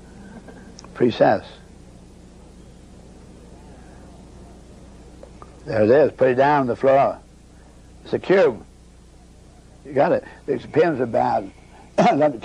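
A man speaks calmly nearby, in short phrases.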